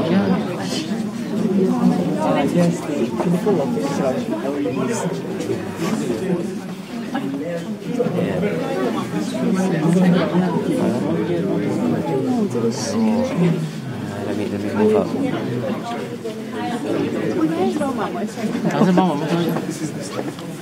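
A crowd of men and women murmur and talk close by in an echoing hall.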